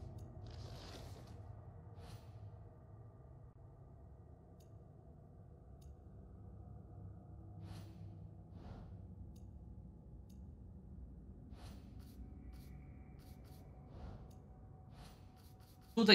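Soft interface clicks tick now and then.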